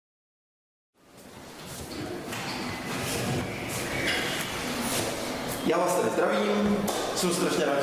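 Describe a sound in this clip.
A man lectures with animation, heard through a microphone in an echoing room.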